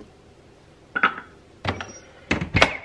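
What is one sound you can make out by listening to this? A wooden paddle taps against a ceramic bowl.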